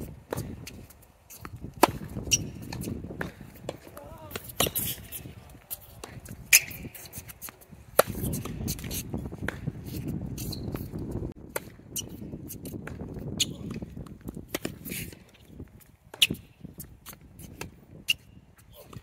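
Sneakers squeak and scuff on a hard court.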